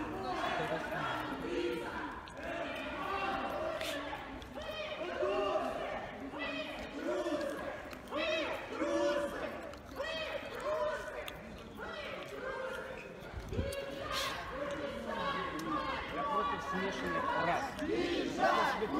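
A crowd of young men and women chatters nearby outdoors.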